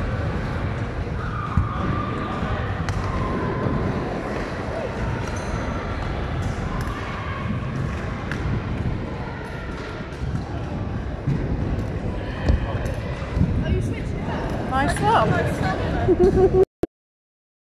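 Skateboard wheels roll and clatter on ramps in a large echoing hall.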